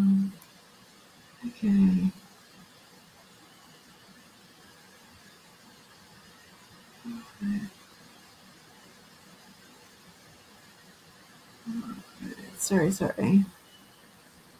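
An elderly woman speaks calmly in short bursts over an online call.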